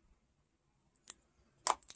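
A small eyeshadow pan clicks as it is lifted from a magnetic palette.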